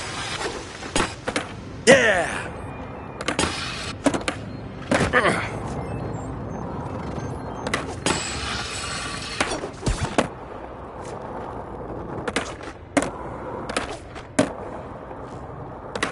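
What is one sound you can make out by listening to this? A skateboard clacks as it lands tricks.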